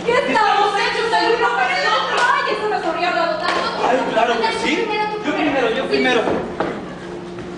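A woman sings through a loudspeaker in a large hall.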